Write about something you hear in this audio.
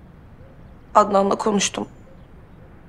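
A young woman speaks briefly and quietly nearby.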